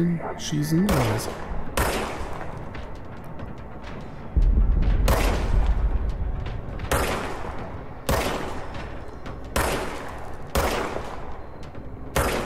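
A pistol fires sharp shots, one after another.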